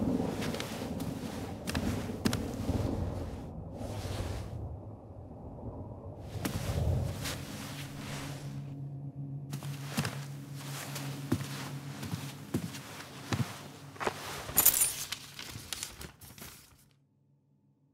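Books and boxes thump and rustle as someone rummages through them.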